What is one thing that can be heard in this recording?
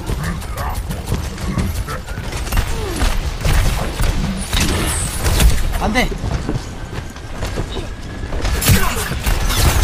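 Guns fire rapidly in a video game.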